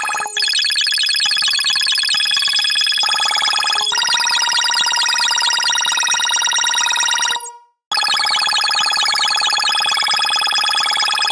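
Bright electronic game music plays steadily.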